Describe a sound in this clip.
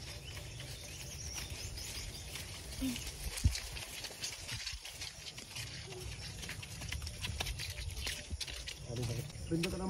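A horse walks through tall grass, its hooves thudding softly.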